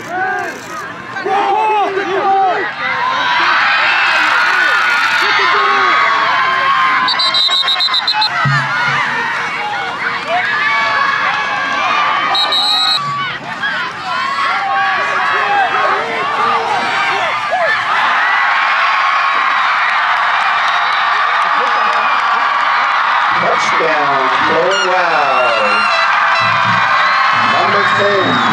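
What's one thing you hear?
A large crowd cheers and shouts in the stands throughout.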